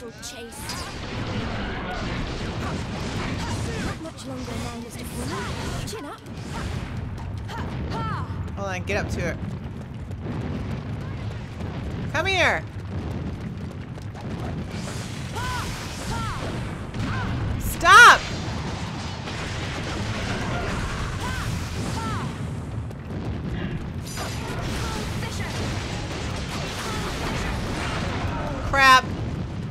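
Sword strikes and magic blasts crash and clang in a fast battle.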